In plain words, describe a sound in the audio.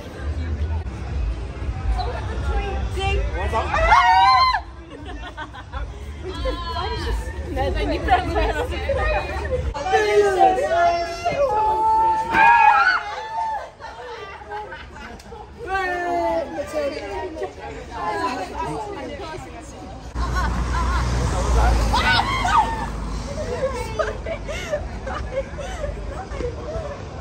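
Young women talk and laugh with animation close by, outdoors.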